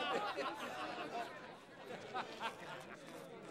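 A group of men laugh heartily nearby.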